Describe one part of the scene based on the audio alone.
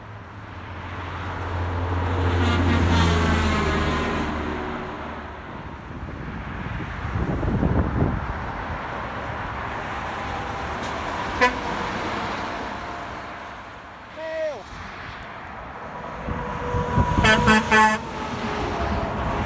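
Heavy trucks roar past close by on a highway.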